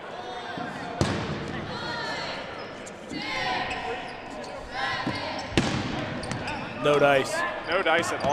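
Balls thud and smack as players throw them.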